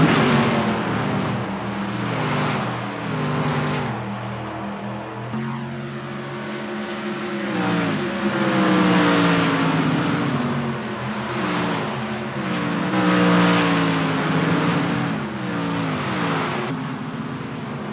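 Race cars whoosh past one after another.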